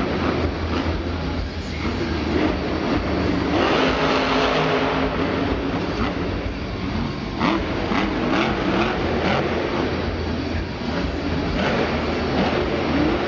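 A monster truck engine revs hard in a large echoing arena.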